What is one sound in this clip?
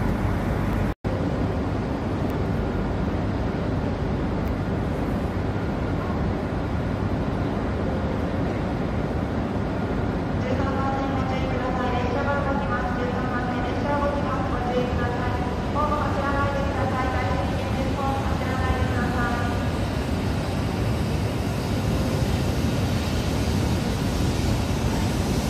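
A high-speed train rolls slowly into a station with a low, steady rumble.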